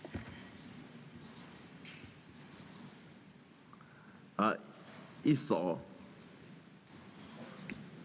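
A felt marker squeaks across paper.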